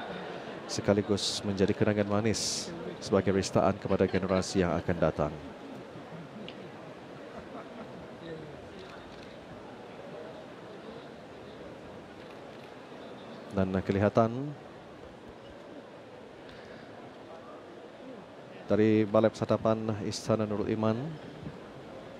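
A crowd of men chants loudly together in a large echoing hall.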